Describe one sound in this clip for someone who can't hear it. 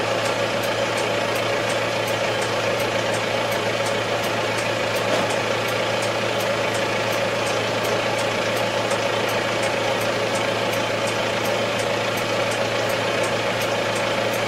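A tractor engine idles with a steady low drone, heard from inside the cab.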